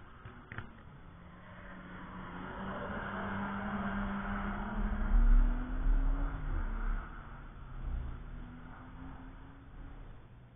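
A sports car engine roars as the car speeds past and fades away.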